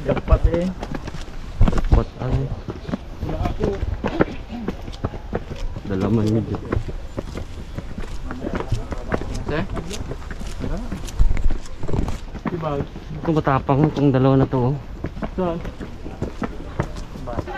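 Footsteps scuff and tap on stone steps.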